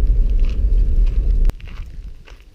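Wind buffets loudly outdoors, then suddenly drops away.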